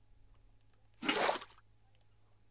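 Water splashes from a bucket.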